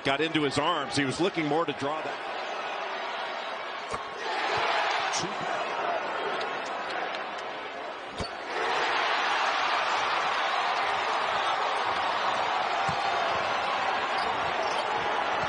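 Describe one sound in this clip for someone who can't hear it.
A large indoor crowd murmurs and cheers, echoing through an arena.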